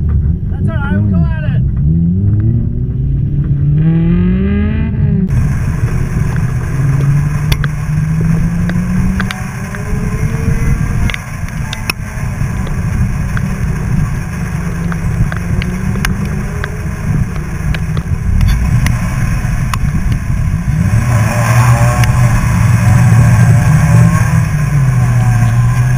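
A car engine revs up and down loudly close by.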